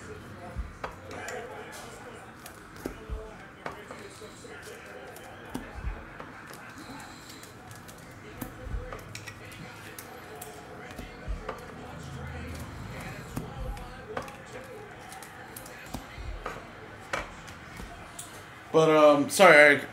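Trading cards rustle and tap as they are flipped by hand.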